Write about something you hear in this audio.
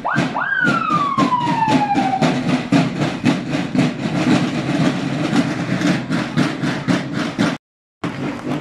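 A marching band's drums beat loudly in a steady rhythm.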